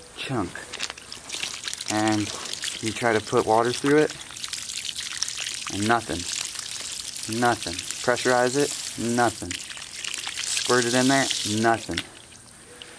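Water sprays hard from a hose nozzle onto gravel.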